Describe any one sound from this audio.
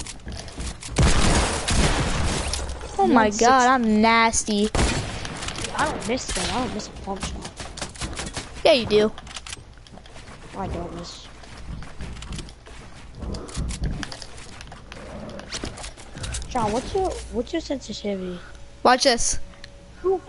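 Gunshots crack sharply now and then.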